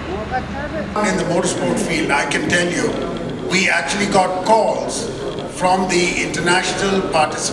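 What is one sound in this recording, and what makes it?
A middle-aged man speaks calmly into a microphone through a loudspeaker.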